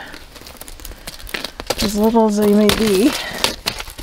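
A hand scrapes and crunches a crust of ice.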